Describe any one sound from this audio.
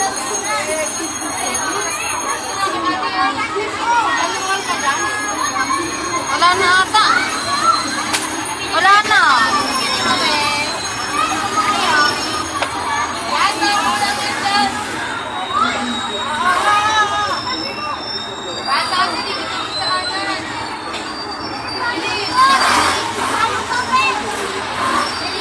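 Young children chatter and call out nearby.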